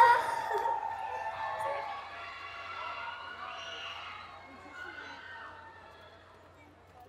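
Young women call out cheerfully through microphones, fading away.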